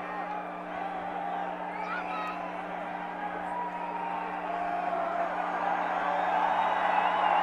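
A large crowd cheers and shouts in a big echoing arena, growing louder.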